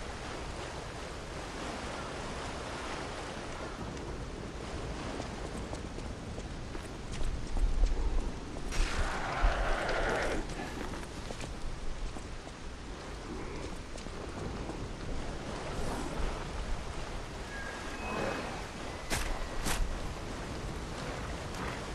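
Footsteps run on stone.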